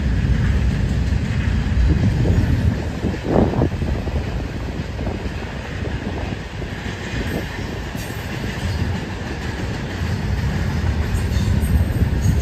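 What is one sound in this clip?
A freight train rumbles steadily along the tracks in the distance.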